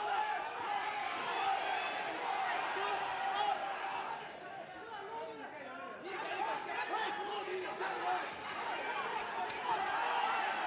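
Gloved punches thud against a body.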